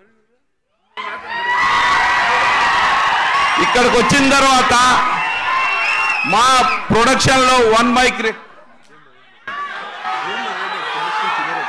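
A middle-aged man speaks loudly and with animation into a microphone, his voice carried over loudspeakers.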